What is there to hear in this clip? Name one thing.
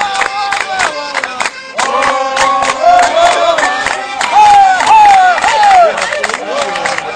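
An accordion plays a lively dance tune.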